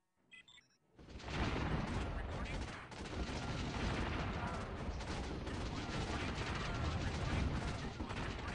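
Gunfire and explosions rattle on in a dense, continuous battle din.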